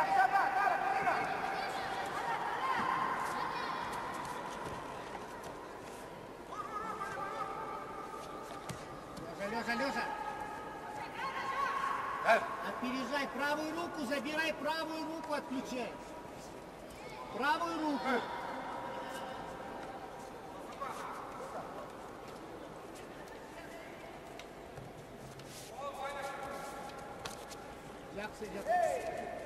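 A crowd shouts and cheers in a large echoing arena.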